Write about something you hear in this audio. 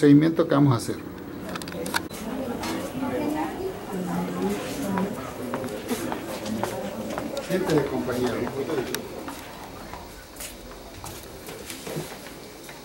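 Voices murmur in the background of an echoing room.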